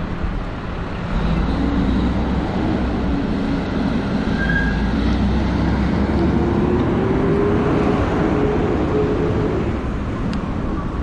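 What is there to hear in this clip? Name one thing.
A fire engine's motor rumbles and revs up ahead.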